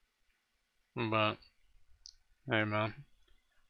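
A young man speaks loudly in two short bursts close to a microphone.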